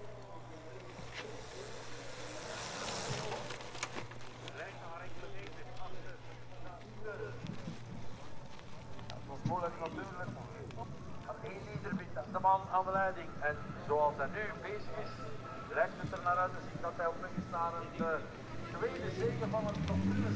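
A bicycle rolls over a bumpy dirt track.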